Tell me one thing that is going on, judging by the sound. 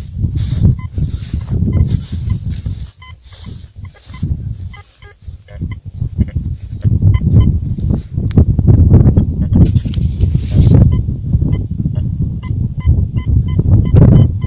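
A metal detector beeps in short repeated tones.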